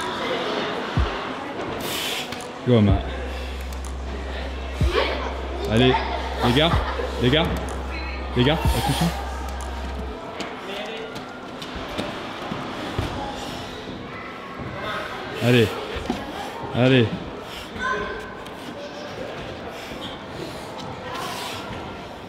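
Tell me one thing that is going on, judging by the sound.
Hands and shoes knock against climbing holds.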